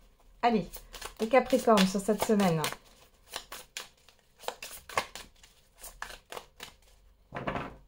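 Playing cards riffle and slap together as a deck is shuffled.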